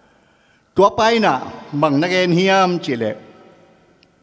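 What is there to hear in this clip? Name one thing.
An elderly man speaks slowly and firmly into a microphone.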